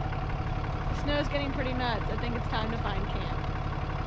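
A young woman speaks from inside a vehicle.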